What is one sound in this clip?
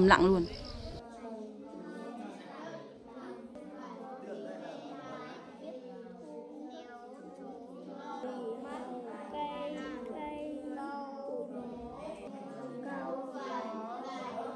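Children read aloud together in a room.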